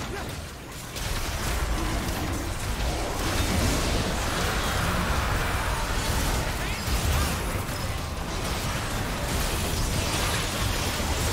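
Spell effects crackle and blast in a game battle.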